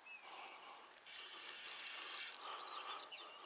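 A fishing reel's drag buzzes briefly.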